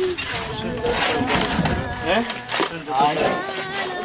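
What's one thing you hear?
A metal tool scrapes and digs into soil.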